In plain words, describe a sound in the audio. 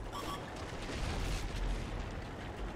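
An explosion bursts nearby, throwing debris.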